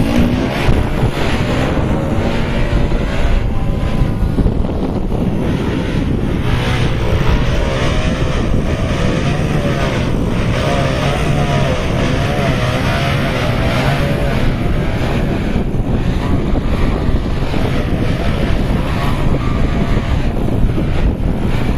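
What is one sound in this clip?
A small model airplane's electric motor whines, rising and falling in pitch as it hovers.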